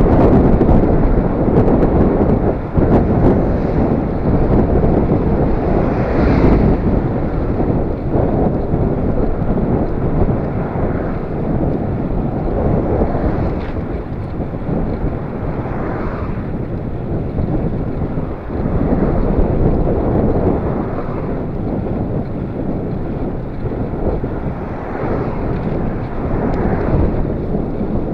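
Wind rumbles loudly across a microphone while riding outdoors.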